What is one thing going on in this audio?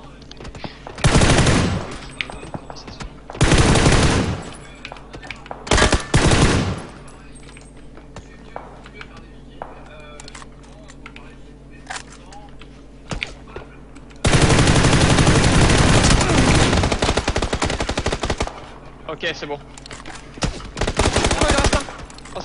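A rifle fires loud rapid bursts, close by.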